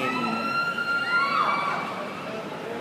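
A referee's whistle blows long and shrill.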